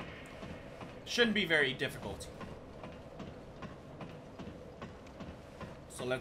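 Metal boots clank on ladder rungs.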